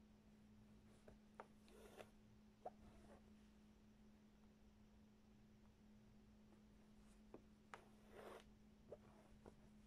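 Thread rasps as it is pulled through taut fabric.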